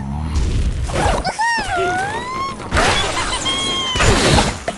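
A cartoon bird squawks as a slingshot flings it.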